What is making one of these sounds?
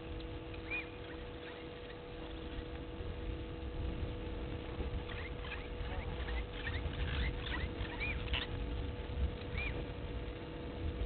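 A duck rustles in dry grass.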